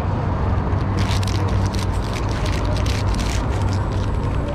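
Paper wrapping crinkles and rustles close by.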